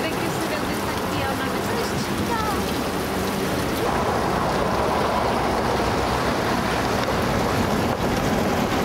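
Water splashes and trickles steadily from a fountain into a basin.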